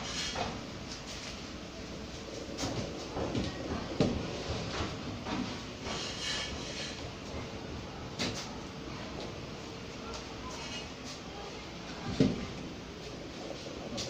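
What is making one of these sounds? Wooden boards knock and clatter as they are moved.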